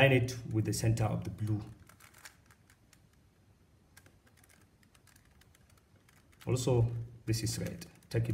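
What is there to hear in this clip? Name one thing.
Plastic puzzle cube pieces click and clatter as they are twisted.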